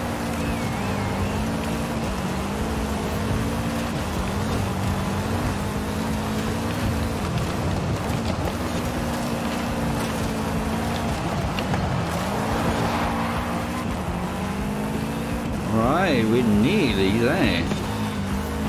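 A car engine drones and revs up and down through gear changes.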